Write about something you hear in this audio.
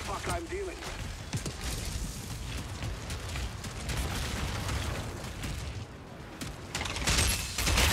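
Boots crunch over dirt and gravel.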